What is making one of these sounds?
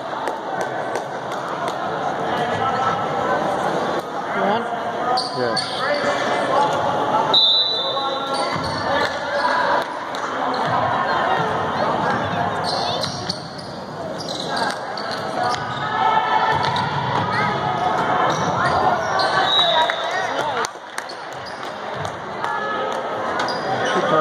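Spectators chatter and cheer in a large echoing gym.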